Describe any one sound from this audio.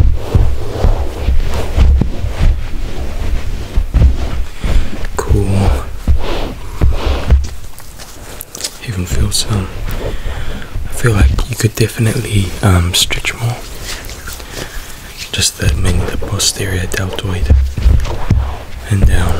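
Hands rub and slide over skin.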